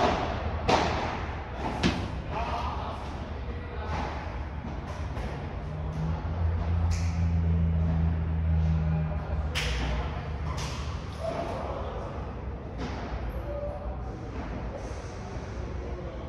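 Sneakers squeak and shuffle on a court surface.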